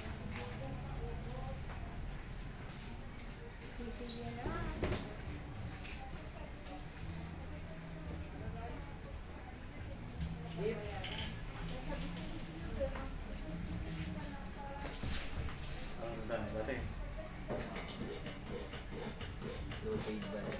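A straight razor scrapes stubble from a lathered face.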